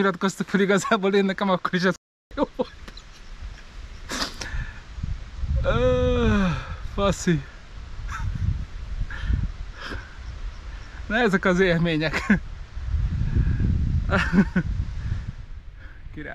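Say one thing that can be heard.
A man talks cheerfully and laughs close to a microphone.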